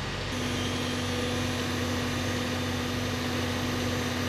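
A fire truck's engine hums steadily.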